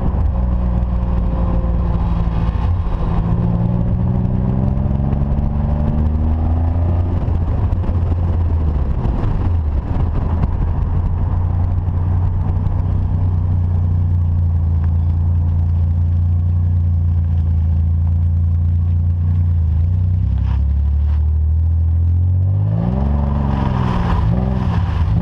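Wind rushes past an open car window.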